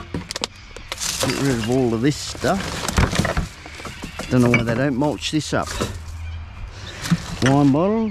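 Plastic rubbish rustles and crinkles as hands dig through a bin.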